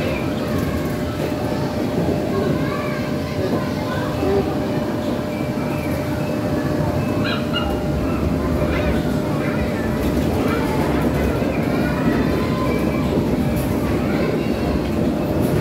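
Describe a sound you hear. Plastic balls rustle and clatter as a child scrambles through them.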